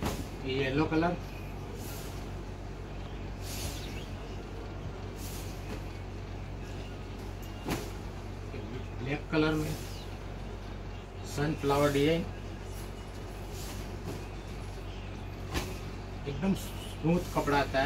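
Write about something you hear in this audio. Cloth rustles and swishes as a man shakes it out.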